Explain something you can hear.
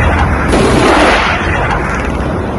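Decoy flares fire off with a loud rushing hiss.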